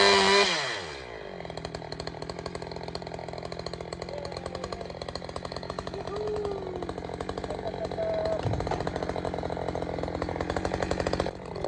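A chainsaw idles with a low rattling putter between cuts.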